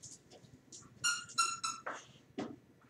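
A squeaky dog toy squeaks a few times.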